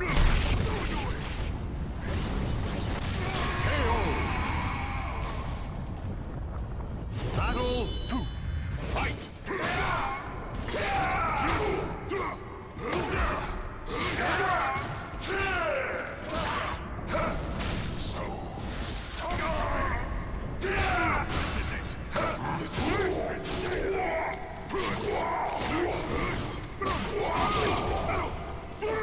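Swords clash and strike with sharp hits.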